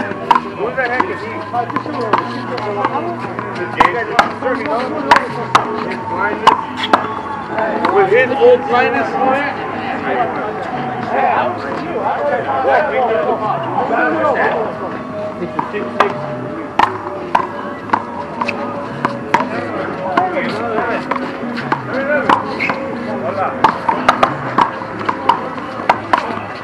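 Men talk and call out nearby during play.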